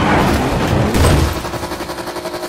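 A car crashes with a loud crunching impact.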